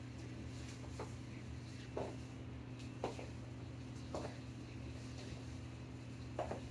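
Sneakers thud softly on a hard floor.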